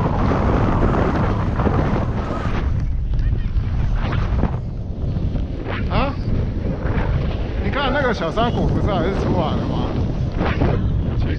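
Wind rushes and buffets loudly outdoors.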